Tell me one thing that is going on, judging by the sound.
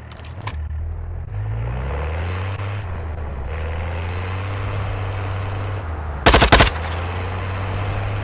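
A vehicle engine hums and revs.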